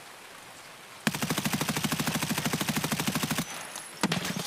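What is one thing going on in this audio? A rifle fires a rapid automatic burst.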